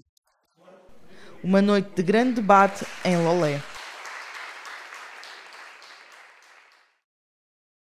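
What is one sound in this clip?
People applaud, then the clapping fades.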